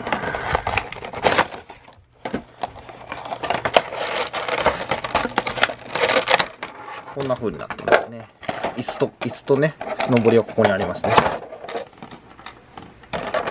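Clear plastic packaging crinkles and crackles close by.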